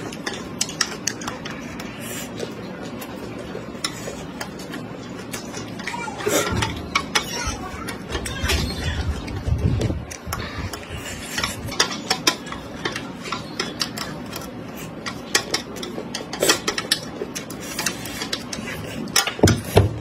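Wooden chopsticks scrape and tap on a metal tray.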